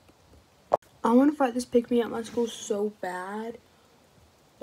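A young girl speaks with animation close to the microphone.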